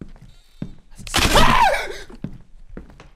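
A young man screams loudly into a microphone.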